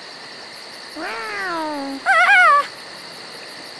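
A girl cries out in alarm.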